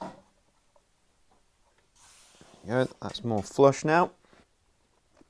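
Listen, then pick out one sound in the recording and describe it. A screwdriver turns a screw into wood with a squeak.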